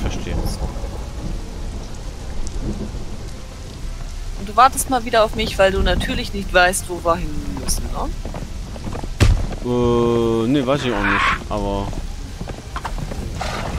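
A horse's hooves thud on soft ground.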